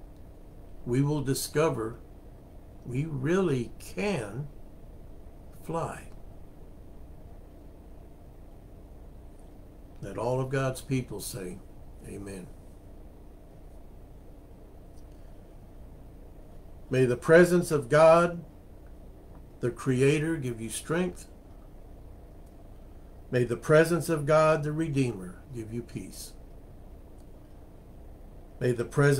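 An older man speaks calmly and close to a microphone, with pauses between phrases.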